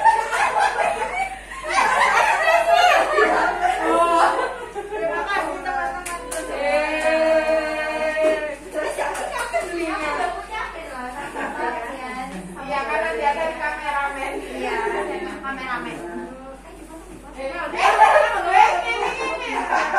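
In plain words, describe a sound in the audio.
Several women talk with animation close by.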